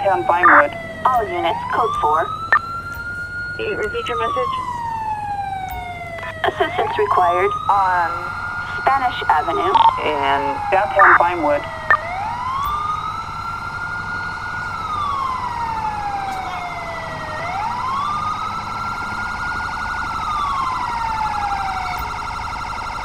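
A siren wails nearby, rising and falling slowly.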